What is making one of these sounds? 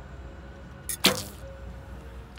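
A bowstring snaps as an arrow is released.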